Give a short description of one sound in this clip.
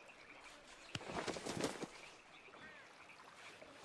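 A heavy carcass thumps down onto stones.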